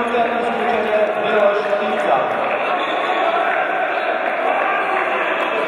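Young men shout and call to each other across a large echoing hall.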